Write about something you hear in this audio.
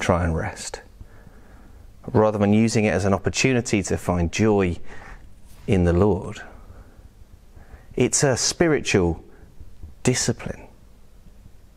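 A man speaks calmly and clearly close to a microphone, in short phrases with pauses.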